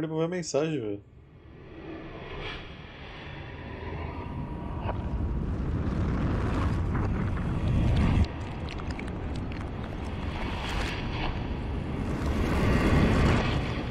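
A deep, roaring rumble of crumbling stone builds and swells.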